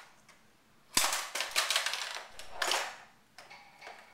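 A toy car clatters onto a hard floor.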